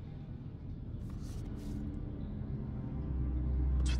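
Paper rustles as a sheet is picked up.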